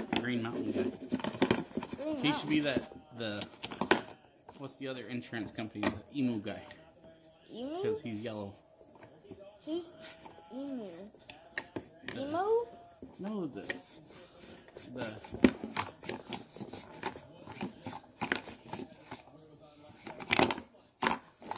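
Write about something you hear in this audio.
Small wooden pieces tap and clatter on a wooden board.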